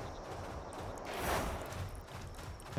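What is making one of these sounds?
Air whooshes past in a sudden burst of speed.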